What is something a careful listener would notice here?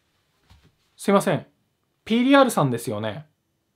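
A young man speaks emphatically, close up.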